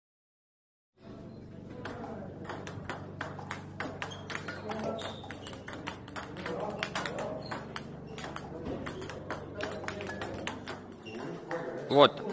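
Table tennis balls click rapidly against paddles and a table.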